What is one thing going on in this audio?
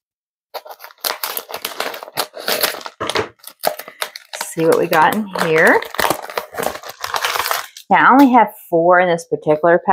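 A plastic mailer bag crinkles and rustles as it is torn open.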